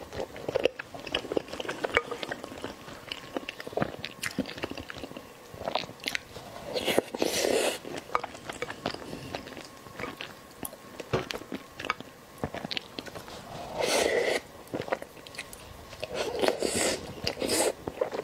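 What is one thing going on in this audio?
A young woman chews and slurps soft food noisily, close up.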